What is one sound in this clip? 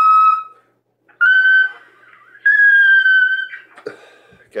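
A small brass mouthpiece buzzes out high, held notes close by.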